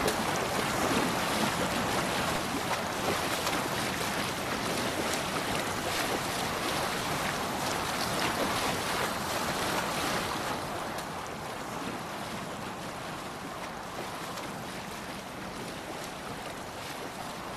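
Water rushes and splashes against a boat's hull.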